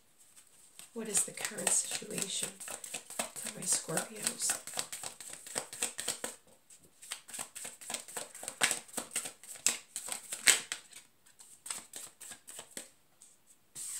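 Playing cards riffle and slap as they are shuffled by hand.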